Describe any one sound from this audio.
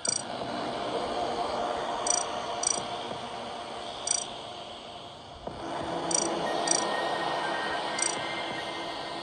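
Short electronic beeps sound with each tap.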